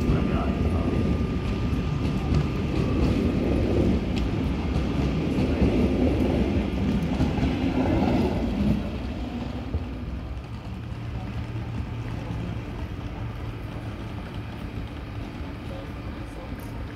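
A train rumbles and clatters loudly as it pulls away close by, then fades into the distance.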